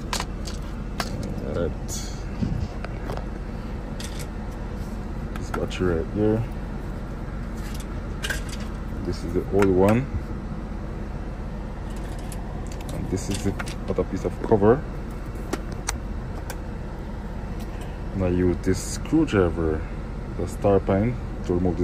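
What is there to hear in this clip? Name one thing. Plastic casing parts click and knock as they are handled.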